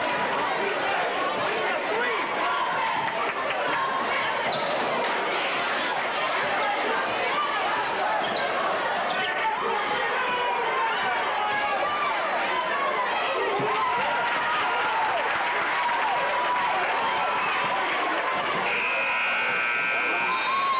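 A large crowd cheers and shouts in an echoing gym.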